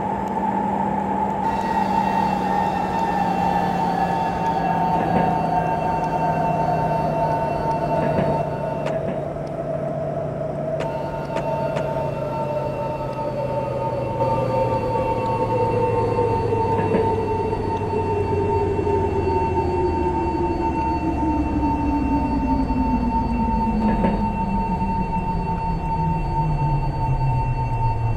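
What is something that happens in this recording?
A train's electric motor whines, sliding steadily lower in pitch as the train slows.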